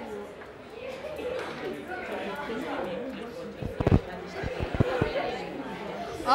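A teenage boy speaks calmly nearby.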